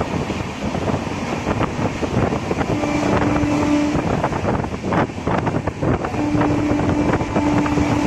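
A train rumbles and clatters along the tracks at a steady pace.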